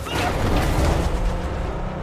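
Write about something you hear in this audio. Metal scrapes along the road.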